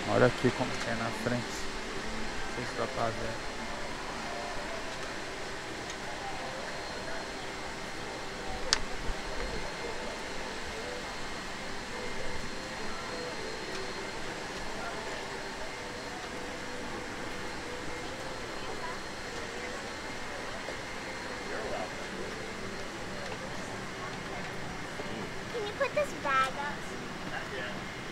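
A steady airplane cabin hum fills the air.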